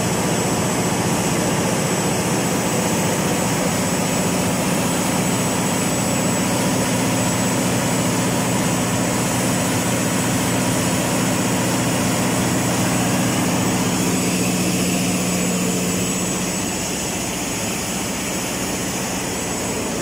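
A large diesel engine runs with a loud, steady roar close by.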